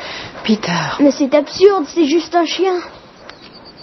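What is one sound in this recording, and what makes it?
A young boy speaks with feeling nearby.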